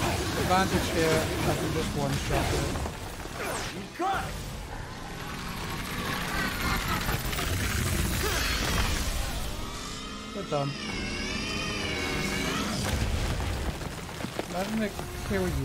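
Magic bolts crackle and zap in rapid bursts.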